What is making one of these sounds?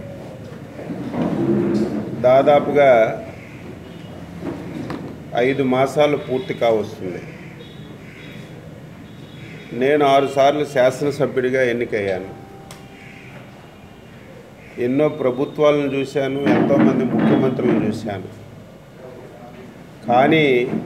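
A middle-aged man speaks forcefully into a nearby microphone, in bursts with pauses.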